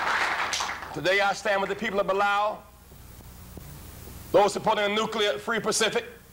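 A man speaks forcefully through a microphone.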